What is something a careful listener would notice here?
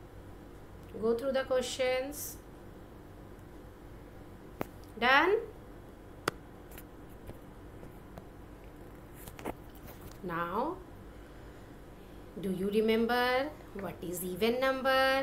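A woman speaks calmly and clearly, as if teaching through an online call.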